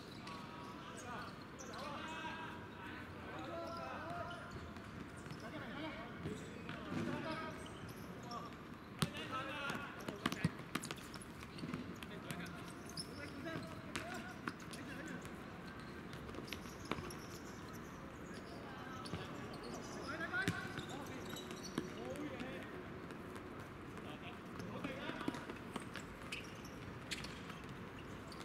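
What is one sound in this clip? Sneakers squeak on a hard court.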